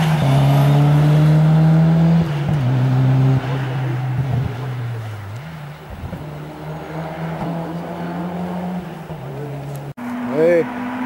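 A rally car engine roars loudly at high revs.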